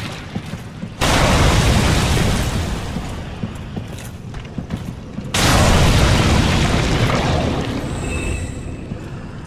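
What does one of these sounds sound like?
Flames burst and roar loudly.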